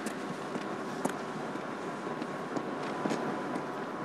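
Footsteps tap on concrete.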